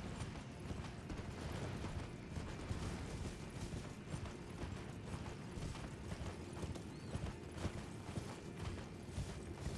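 Horse hooves gallop steadily over grass and dirt.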